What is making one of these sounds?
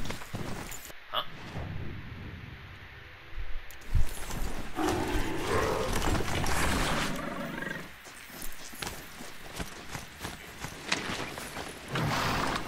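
Heavy mechanical footsteps clank as a robotic mount trots over dirt.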